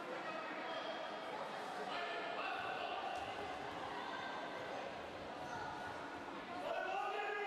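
Young girls shout and call out in a large echoing hall.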